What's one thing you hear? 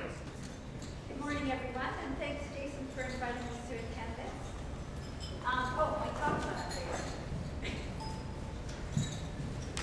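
A woman speaks calmly into a microphone in a large room.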